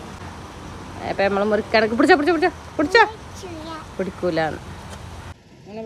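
A little girl talks excitedly close by.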